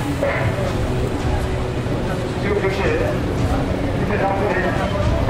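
A middle-aged man speaks forcefully into a handheld microphone, heard through a loudspeaker outdoors.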